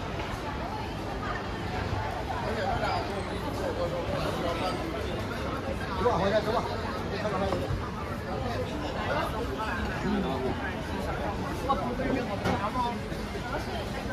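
A crowd chatters and talks all around outdoors.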